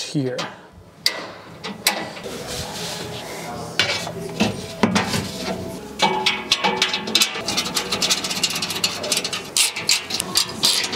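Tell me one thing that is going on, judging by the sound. Metal parts click and clank as a man handles them.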